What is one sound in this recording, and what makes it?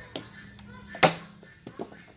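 A cleaver chops down hard on a wooden board.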